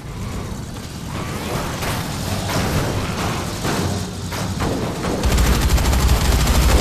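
A vehicle engine roars as it drives.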